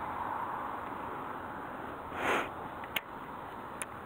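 A fishing reel clicks and whirs as its line is wound in.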